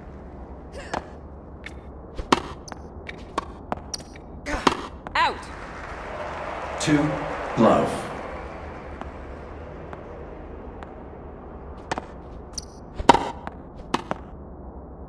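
A tennis ball is struck with sharp pops of a racket.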